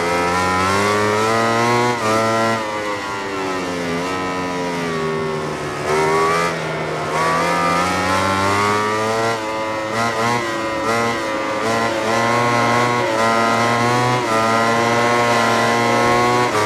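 A motorcycle engine revs high and changes pitch with each gear shift.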